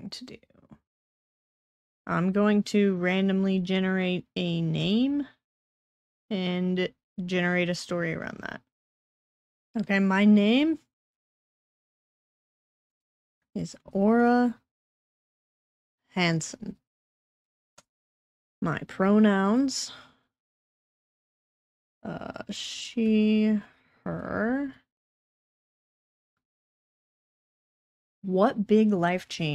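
A young woman speaks calmly into a microphone, close up, with pauses.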